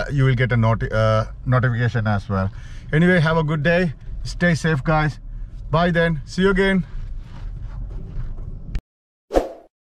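A middle-aged man talks calmly and close by inside a car.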